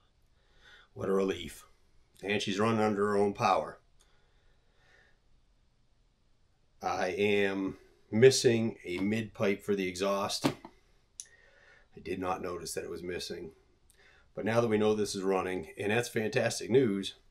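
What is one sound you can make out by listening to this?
A middle-aged man speaks calmly and close by, with pauses.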